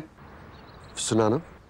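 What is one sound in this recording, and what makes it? A man speaks tensely into a phone.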